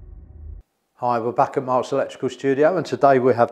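A middle-aged man speaks calmly and clearly into a microphone.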